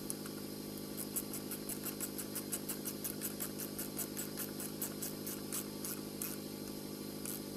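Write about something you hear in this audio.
A ratchet wrench clicks rapidly as a bolt is tightened.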